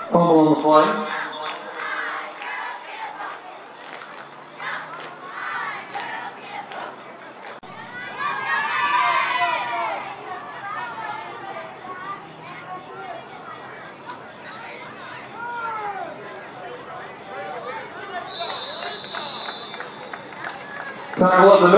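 Players shout and call to one another across the field.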